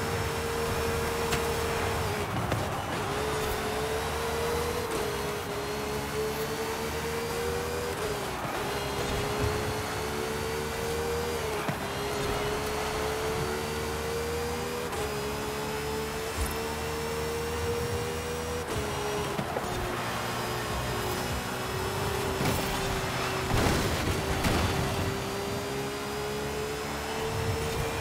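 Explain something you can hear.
A racing car engine roars at high revs, rising in pitch and briefly dropping with each gear change.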